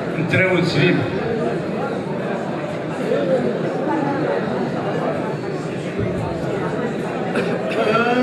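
Several men sing together through microphones, loud and amplified.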